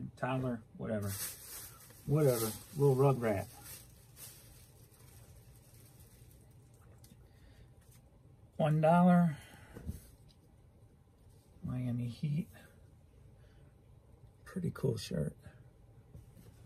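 Fabric rustles as a shirt is handled.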